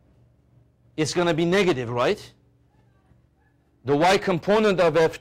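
A man speaks clearly and with animation, close to a microphone.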